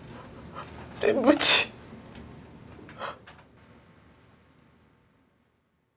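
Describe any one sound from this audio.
A cloth sheet rustles softly.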